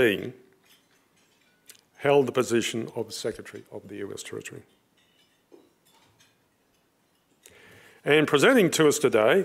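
An elderly man speaks calmly into a microphone in a large room.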